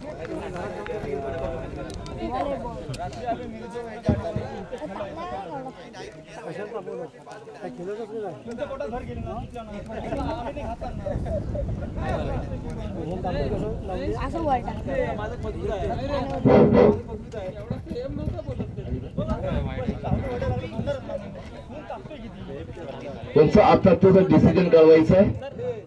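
Several men talk and call out outdoors.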